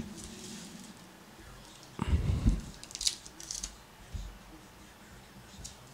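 A foil card wrapper crinkles as hands tear it open.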